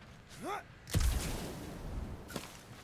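A character lands heavily with a thump after a jump.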